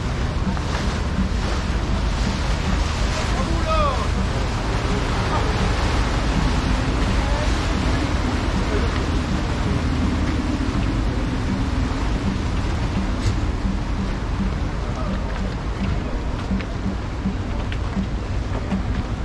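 Motorboat engines rumble and hum on the water.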